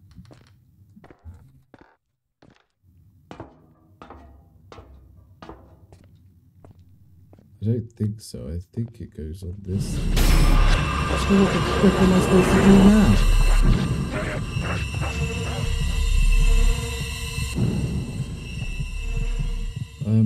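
A man talks into a microphone close by.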